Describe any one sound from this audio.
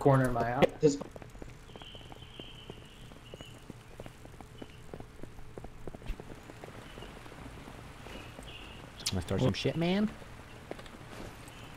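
Footsteps walk steadily on hard ground.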